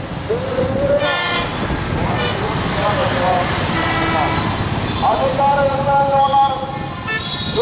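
Vehicle horns honk repeatedly nearby.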